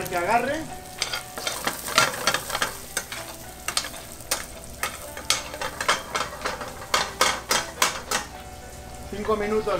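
A metal spatula scrapes and clinks against a frying pan.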